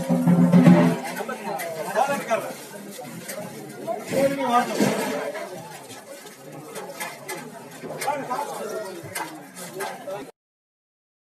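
Several young men talk loudly in a crowd outdoors.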